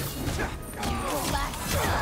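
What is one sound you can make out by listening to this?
A fiery explosion bursts with a loud boom.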